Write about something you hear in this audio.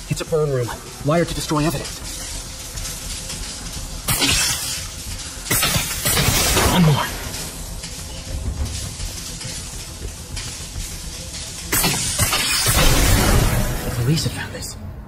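Electric sparks crackle and sizzle in sharp bursts.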